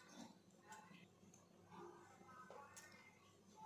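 Glass bangles clink softly on a wrist.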